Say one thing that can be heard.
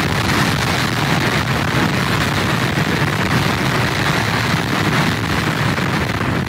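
Rough surf crashes and churns against the pier's pilings.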